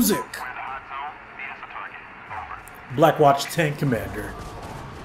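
A man speaks urgently over a crackling radio.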